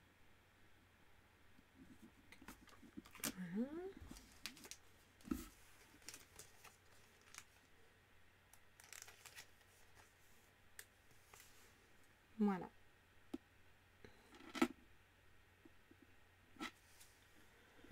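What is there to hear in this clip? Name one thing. A trading card rustles softly as a hand moves it.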